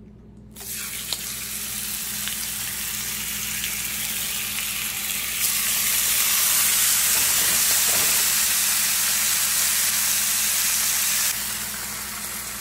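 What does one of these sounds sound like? Steak sizzles in a hot pan.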